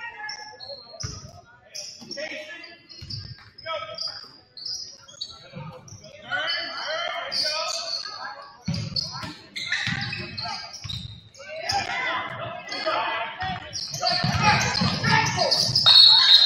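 A basketball bounces on a hard floor in an echoing gym.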